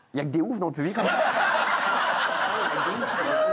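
An audience applauds and cheers.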